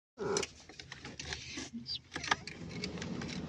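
A car key clicks as it turns in the ignition.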